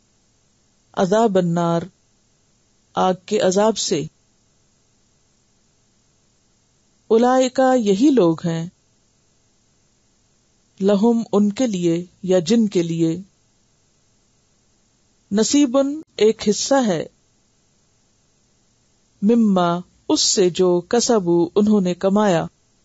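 A woman speaks calmly and close to a microphone, in short phrases with pauses.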